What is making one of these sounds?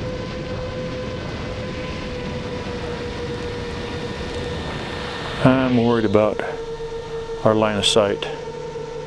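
Wind rushes past a flying drone.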